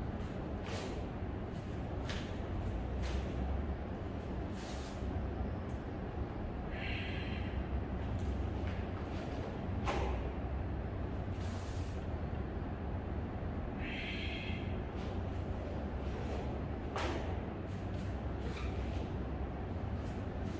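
Bare feet thud and slide on a mat.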